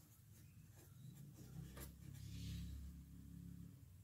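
A pen scratches across paper close by.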